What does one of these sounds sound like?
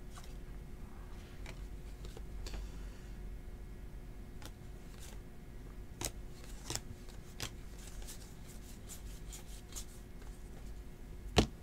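Trading cards flick and slide against each other as they are shuffled by hand.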